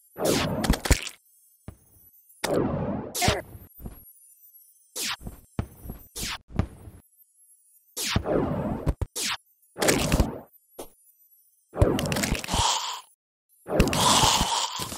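Magic bolts zap and whoosh in short bursts.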